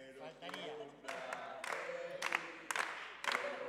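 A group of people applaud and cheer.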